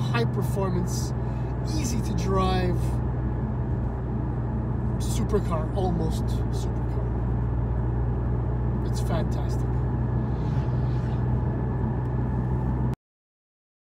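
A car engine hums steadily inside the cabin.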